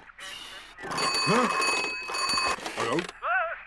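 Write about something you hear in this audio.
A telephone rings loudly.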